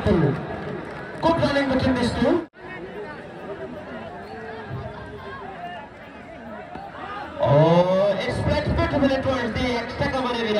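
A man commentates loudly over a loudspeaker.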